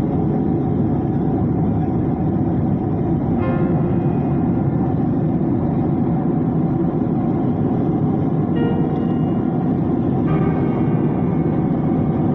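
A jet engine roars steadily from inside an aircraft cabin.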